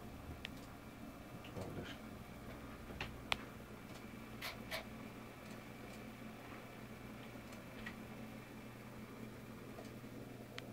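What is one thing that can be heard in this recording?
A kitten purrs softly and steadily close by.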